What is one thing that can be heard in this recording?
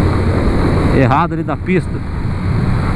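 A motorcycle engine revs up and down briefly during a gear change.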